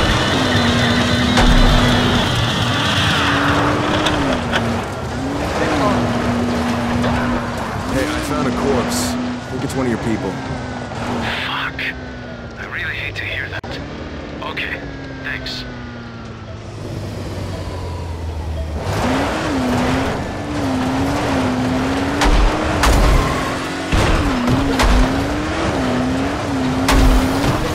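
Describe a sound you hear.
A buggy engine revs up and down steadily.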